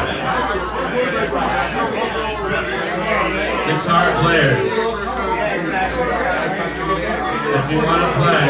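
A man sings into a microphone, heard through loudspeakers.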